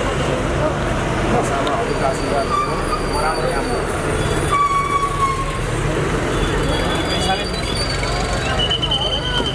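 A crowd of men talk and shout over each other close by.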